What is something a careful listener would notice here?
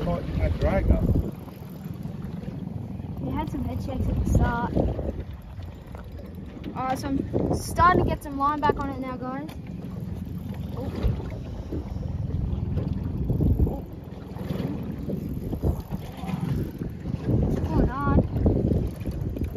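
A fishing reel clicks as it winds in line.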